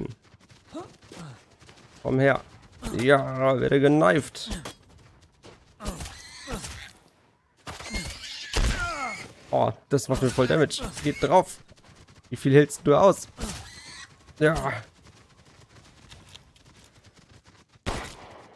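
A pig grunts.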